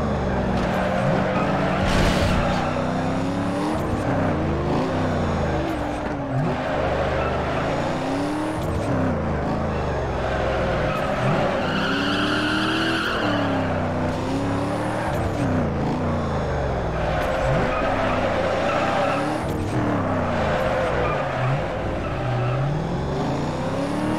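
A car engine revs high and rises and falls in pitch.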